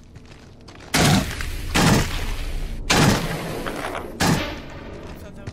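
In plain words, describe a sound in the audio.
A rifle fires several loud, sharp shots.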